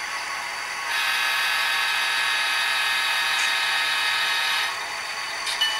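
A model locomotive horn blows a long, loud blast.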